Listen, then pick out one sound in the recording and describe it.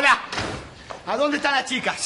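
A young man shouts excitedly.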